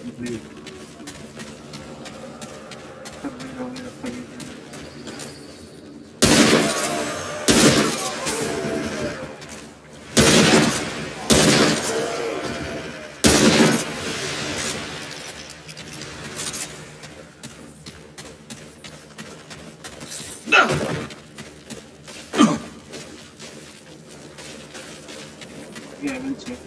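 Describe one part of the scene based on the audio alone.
Footsteps crunch on wet ground.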